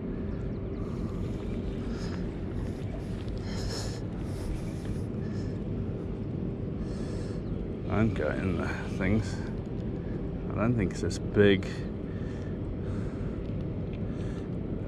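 A fishing reel whirs and clicks as its handle is cranked.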